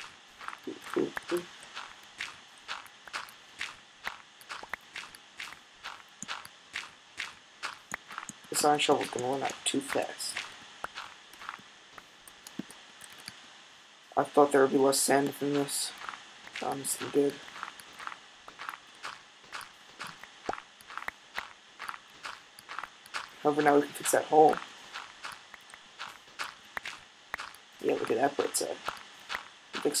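Sand blocks crunch as they are dug out, again and again in a quick steady rhythm.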